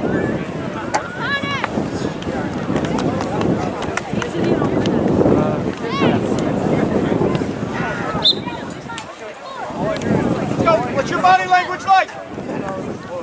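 Young players shout to each other across the field.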